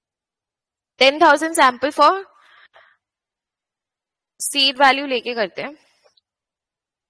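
A woman speaks calmly into a microphone, as if over an online call.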